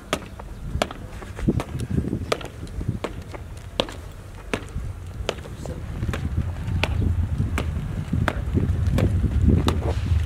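Boots tramp steadily on hard ground as men march past.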